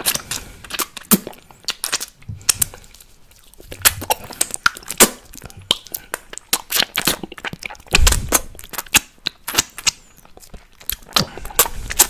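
A man makes sharp wet mouth clicks and smacks close to a microphone.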